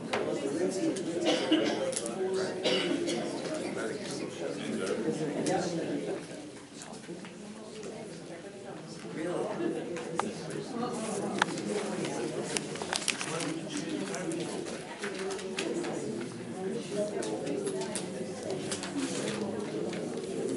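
An older man talks calmly nearby.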